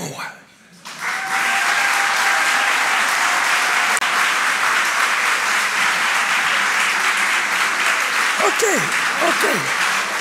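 A large crowd applauds loudly and steadily in an echoing hall.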